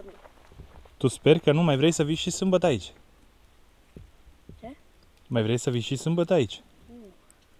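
A young boy talks close by.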